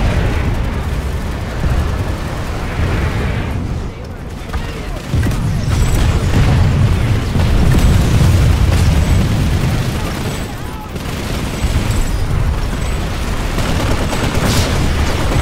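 Explosions boom and crackle in rapid bursts.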